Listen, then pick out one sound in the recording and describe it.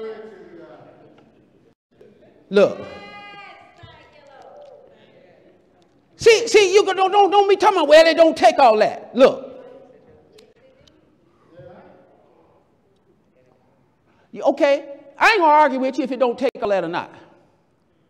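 A middle-aged man preaches with animation into a microphone in a large echoing hall.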